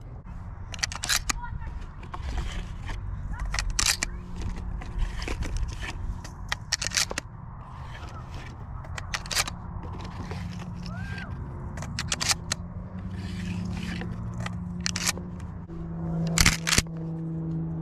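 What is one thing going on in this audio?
Shotgun shells click into a magazine one after another.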